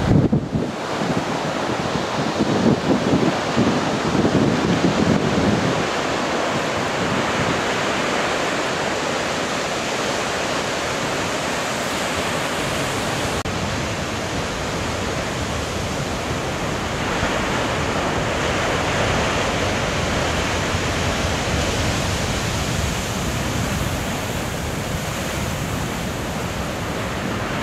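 Heavy surf roars and crashes against rocks.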